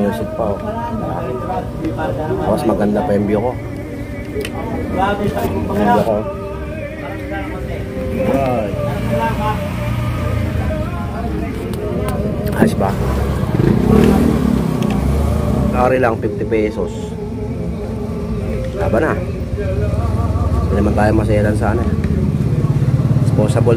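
A fork and spoon scrape and clink on a plate.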